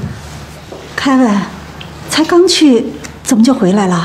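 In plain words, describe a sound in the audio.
A woman speaks with surprise, close by.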